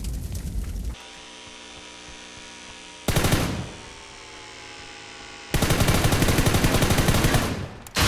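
A drone hums overhead.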